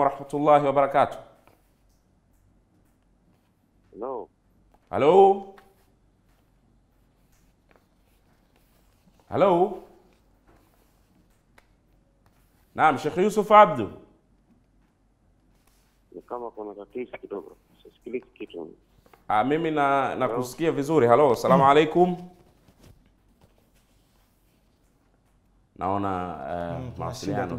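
A young man speaks calmly into a microphone in short bursts with pauses.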